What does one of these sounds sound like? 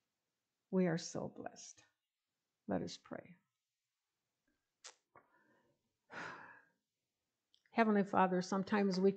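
An elderly woman speaks calmly into a microphone, with pauses.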